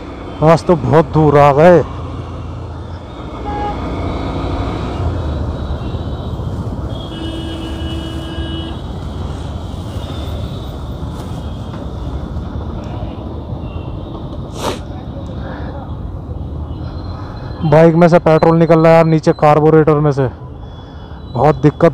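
A motorcycle engine rumbles steadily in slow traffic.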